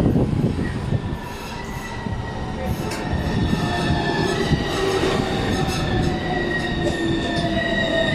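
Tram brakes squeal as the tram slows to a halt.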